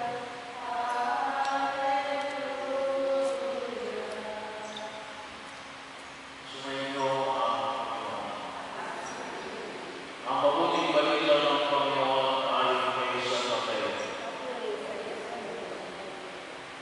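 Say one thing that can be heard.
A man sings through a microphone, echoing in a large hall.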